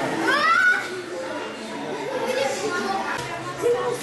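Young girls laugh close by.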